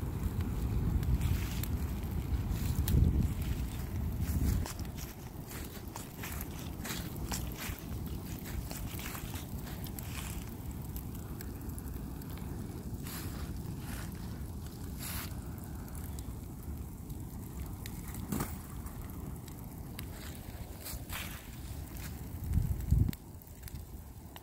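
A fire roars steadily outdoors.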